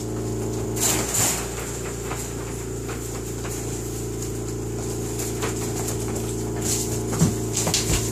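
A wire pen rattles as puppies bump against it.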